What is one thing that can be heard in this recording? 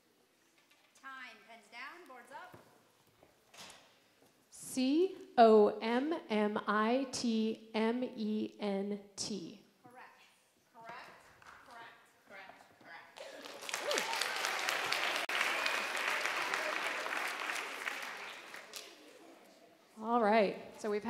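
A woman speaks clearly into a microphone in a large echoing hall.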